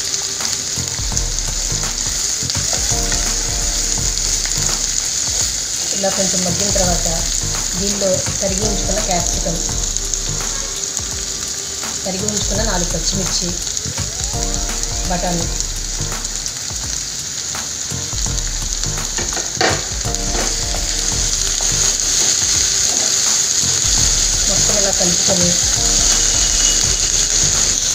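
A spatula scrapes and clatters in a metal pan.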